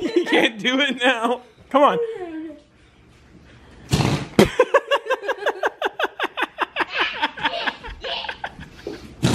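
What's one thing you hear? A young girl laughs loudly close by.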